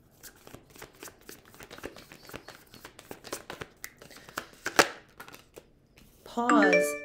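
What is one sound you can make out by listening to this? Paper packets crinkle and rustle as they are handled.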